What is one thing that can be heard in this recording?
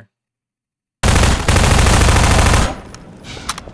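Gunfire rattles in a fast burst.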